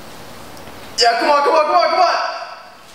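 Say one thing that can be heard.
A young man shouts excitedly nearby.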